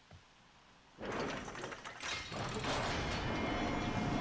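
A heavy mechanical door slides open with a loud rushing whoosh.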